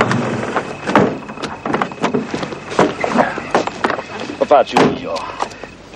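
A car door clicks open and shuts.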